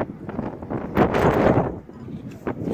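Wind gusts across the microphone outdoors.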